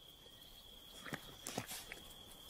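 A honey badger sniffs at the ground close by.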